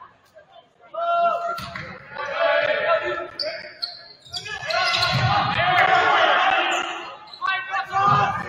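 Players shout to each other during play.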